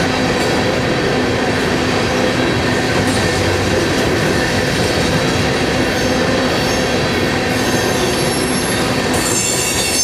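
A freight train of coal hopper cars rumbles past close by.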